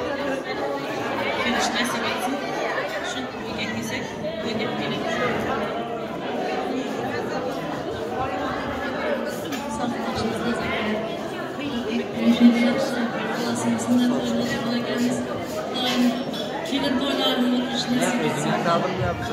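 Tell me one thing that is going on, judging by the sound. A crowd of women chatters in the background.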